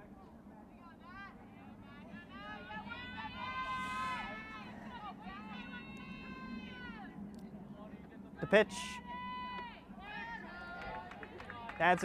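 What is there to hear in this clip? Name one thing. Young women on a team chant and cheer loudly outdoors.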